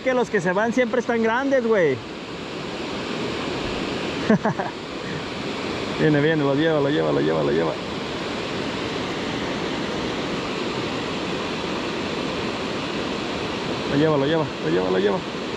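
Water rushes steadily over a weir nearby.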